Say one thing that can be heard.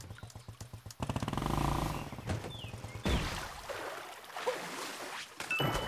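A small motor scooter engine hums and revs.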